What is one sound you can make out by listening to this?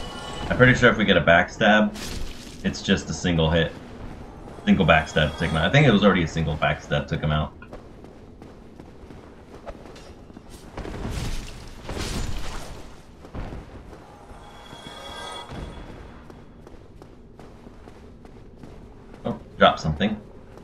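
Armoured footsteps run across a stone floor.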